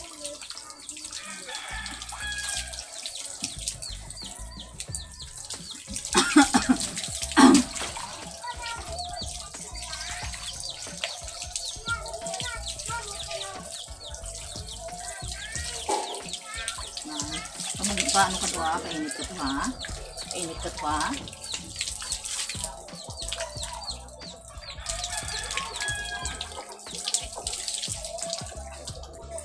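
Water splashes and trickles onto a dog's wet fur.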